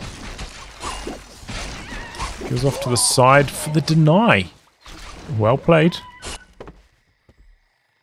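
Swords clash and strike in a busy skirmish.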